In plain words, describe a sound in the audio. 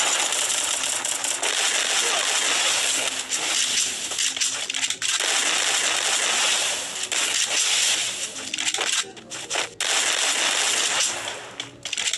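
Shotgun blasts crack loudly, one after another.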